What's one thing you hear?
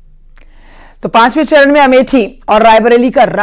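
A young woman reads out news calmly and clearly, close to a microphone.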